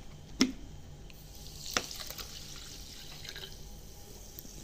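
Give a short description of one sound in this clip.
Water pours from a plastic bottle into a cup.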